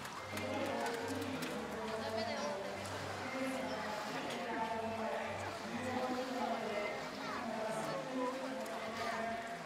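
Water splashes as killer whales swim and surface.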